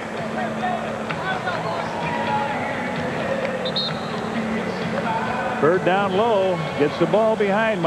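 A large crowd roars and murmurs in an echoing arena.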